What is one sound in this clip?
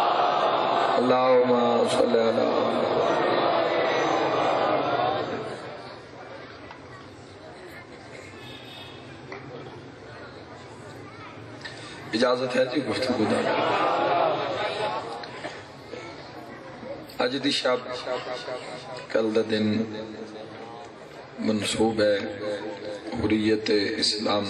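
A man recites loudly and passionately through a microphone in an echoing hall.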